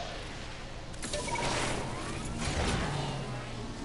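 An explosion crackles with a shower of sparks.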